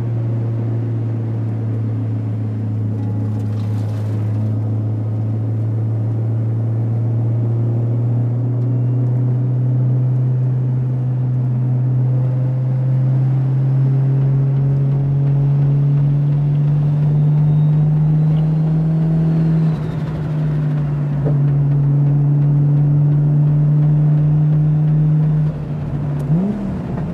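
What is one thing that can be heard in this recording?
A car engine drones loudly up close, its pitch slowly climbing.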